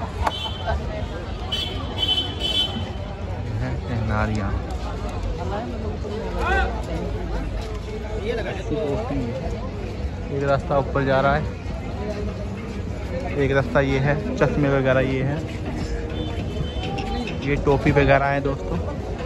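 A crowd of men and women chatters nearby on a busy street outdoors.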